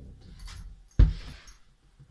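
A loud thump sounds close by.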